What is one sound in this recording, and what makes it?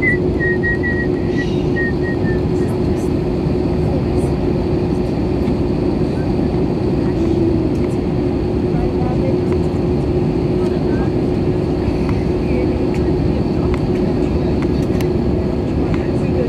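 An aircraft cabin drones with a loud, steady engine roar.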